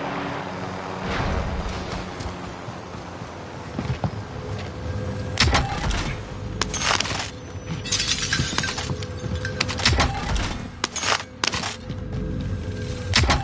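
Footsteps thud close by.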